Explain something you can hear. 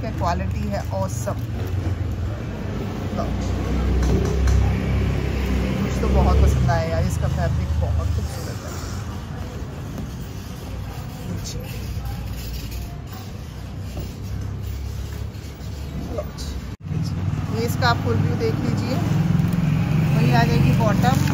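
A young woman speaks calmly and clearly close to a microphone.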